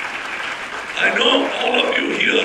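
A middle-aged man speaks into a microphone through loudspeakers.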